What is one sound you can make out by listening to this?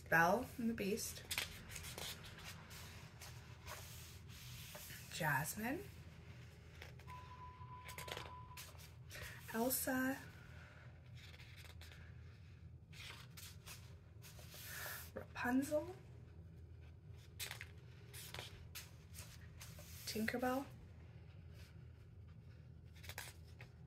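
Paper pages of a book are turned and rustle.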